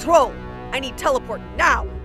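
A woman speaks breathlessly.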